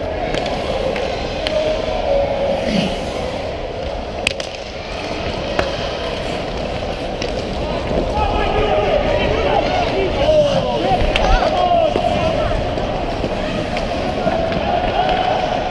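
Ice skates scrape and hiss across ice in a large echoing rink.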